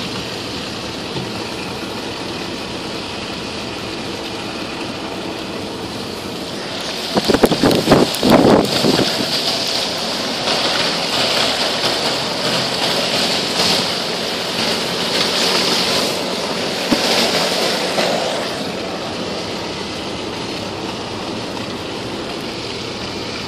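Wind blows hard outside a moving car.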